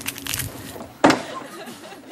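A bag thuds onto hard ground.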